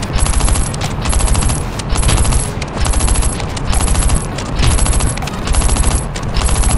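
Rapid automatic gunfire rattles in short, repeated bursts.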